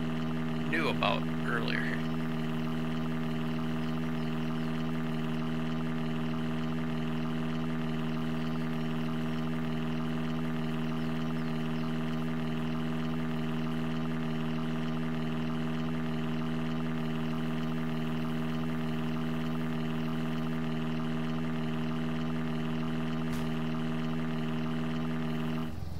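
A small utility vehicle's engine hums steadily as it drives along.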